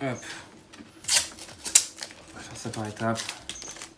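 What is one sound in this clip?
Adhesive tape is pulled off a roll with a ripping sound.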